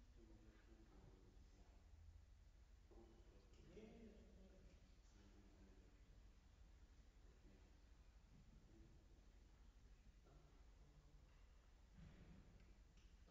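A piano plays softly in a hall with a light echo.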